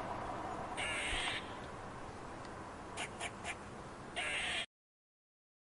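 A squirrel scrabbles in dry leaves.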